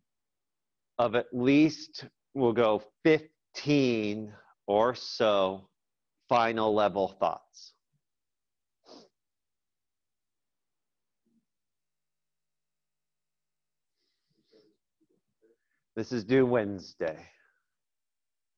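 A young man talks calmly into a microphone, as on an online call.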